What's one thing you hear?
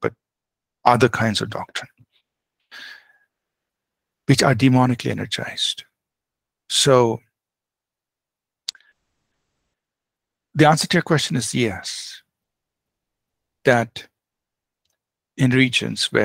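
A man speaks calmly in short bursts over a headset microphone in an online call.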